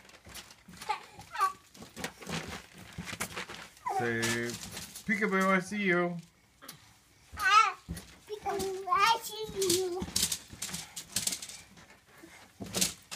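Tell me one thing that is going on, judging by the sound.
Feet thump softly on a bouncing trampoline.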